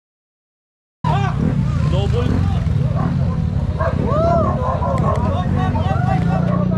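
A motorcycle engine revs nearby.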